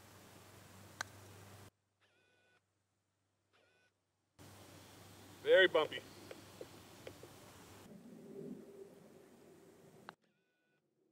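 A putter taps a golf ball with a short click.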